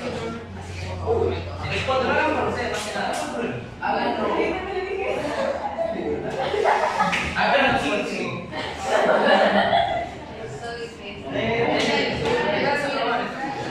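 Young people chatter and talk over one another nearby in an echoing room.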